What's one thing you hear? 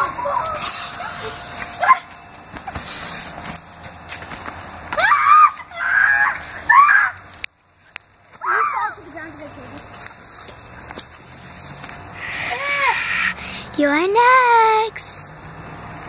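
A young girl shrieks and screams close by.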